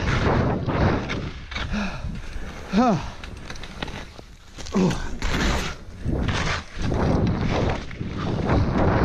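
Wind buffets loudly against the microphone.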